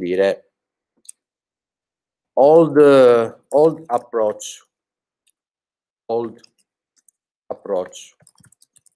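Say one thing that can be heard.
A young man speaks calmly into a close microphone, with pauses.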